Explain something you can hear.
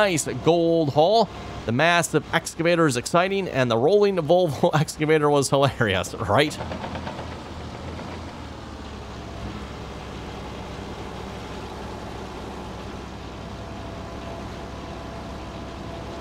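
A heavy excavator engine hums steadily.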